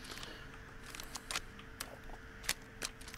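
A rifle clicks and clacks as it is reloaded.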